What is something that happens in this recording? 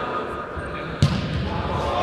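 A foot kicks a futsal ball with a thud in an echoing hall.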